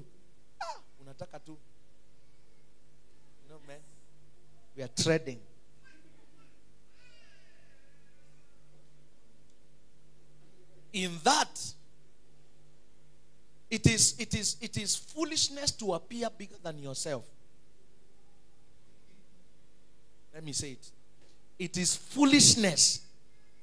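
A man preaches into a microphone in bursts, with pauses between phrases, heard through loudspeakers in a room.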